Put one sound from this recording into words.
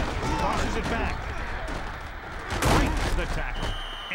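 Football players collide with thuds during a play.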